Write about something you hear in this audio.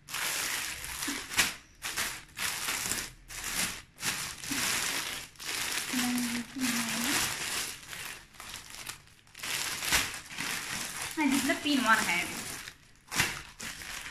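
Plastic packaging crinkles and rustles close by.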